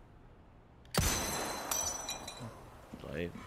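A pistol fires a loud shot that echoes.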